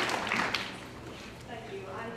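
A young woman speaks into a microphone, heard through loudspeakers in a large hall.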